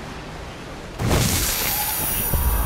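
A blade slashes with a sudden loud whoosh and thud.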